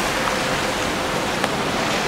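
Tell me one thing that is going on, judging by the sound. Floodwater rushes and splashes past.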